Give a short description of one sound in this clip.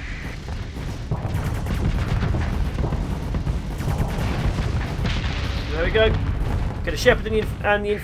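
Deep explosions rumble and boom.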